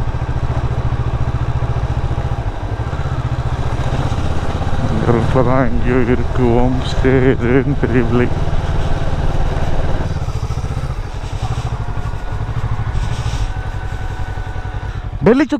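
A motorcycle engine putters steadily at low speed.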